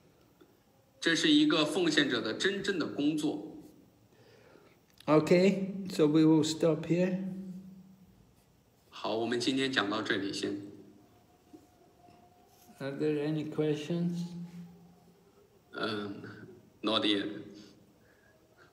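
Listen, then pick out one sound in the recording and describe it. An elderly man speaks close to a phone microphone in short bursts with pauses.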